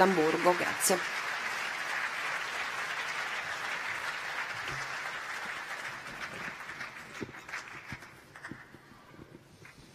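An audience applauds and the applause fades.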